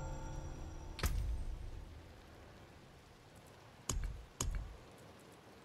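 Soft clicks tap sharply, one after another.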